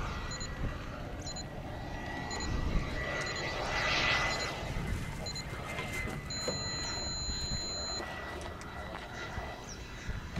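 A small propeller plane drones overhead, growing louder and then slowly fading.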